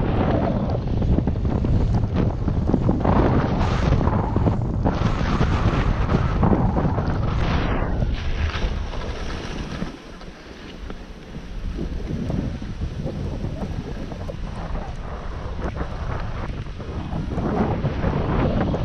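Skis hiss and swish through soft snow.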